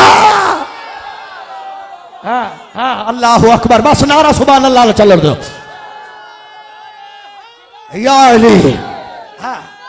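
A man sings with passion through a microphone, with a heavy echo.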